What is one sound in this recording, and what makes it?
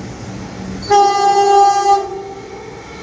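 A train horn sounds loudly.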